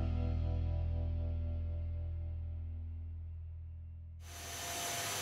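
A power tool motor hums and slowly winds down.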